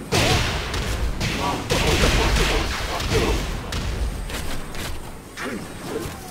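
Heavy blows land with loud, crackling impacts.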